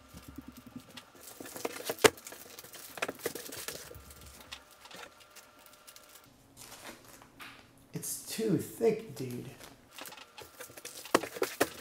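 A cardboard sheet taps and slides against a table.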